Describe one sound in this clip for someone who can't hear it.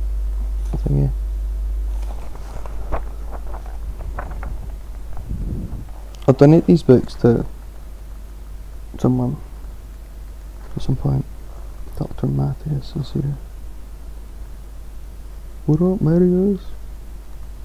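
A man speaks calmly and close by, in short bursts with pauses.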